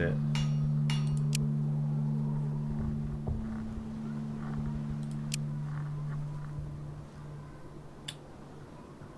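Short interface clicks tick now and then.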